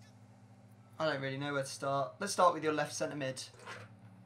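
A young man talks with animation into a headset microphone, heard as if over an online call.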